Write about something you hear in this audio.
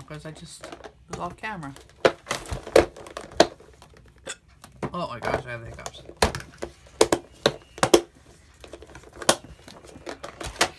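A plastic box clicks and clatters as it is handled.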